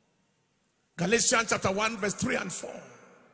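A man preaches forcefully into a microphone over loudspeakers.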